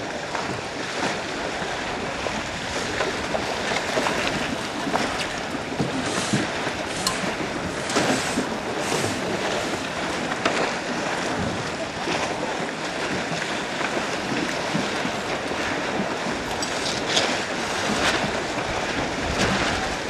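Waves splash against sailing boat hulls.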